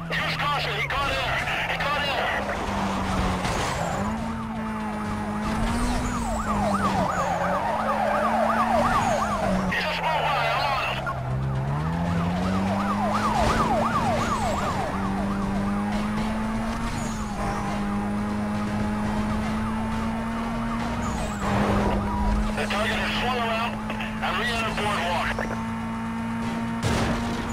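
A car engine roars and revs up and down at high speed.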